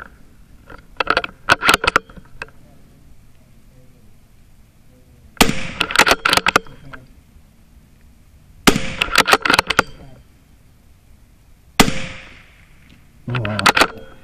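A hanging metal can clanks when hit.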